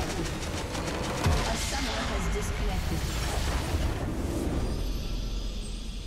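A large magical blast booms and shatters.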